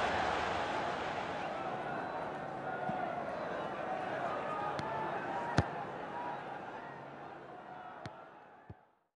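A large crowd roars steadily and slowly fades away.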